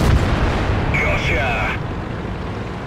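A shell explodes with a loud boom that fades away.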